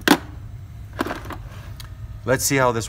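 A hard plaster model knocks and clicks against a metal holder.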